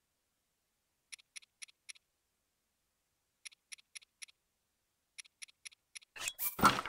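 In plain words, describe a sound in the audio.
Soft menu clicks tick in quick bursts.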